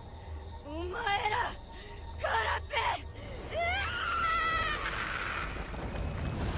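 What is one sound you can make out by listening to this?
A young woman screams in rage.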